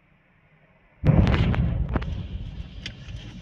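A huge explosion booms close by.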